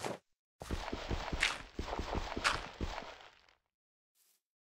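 A shovel digs crunchily into dirt.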